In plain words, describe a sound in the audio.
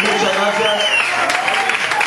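A man claps his hands rapidly.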